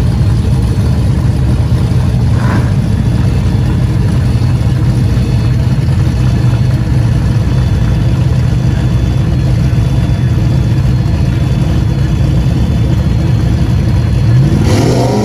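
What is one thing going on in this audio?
A car's engine idles with a loud, deep rumble close by.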